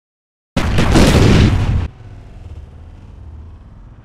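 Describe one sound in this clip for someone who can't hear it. A body falls and thuds onto a hard floor.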